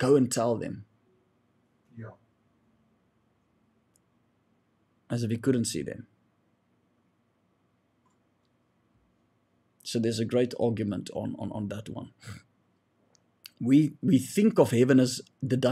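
A young man speaks calmly into a close microphone, in short bursts with pauses.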